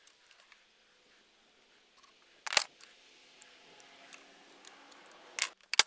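A pencil scratches a mark on wood.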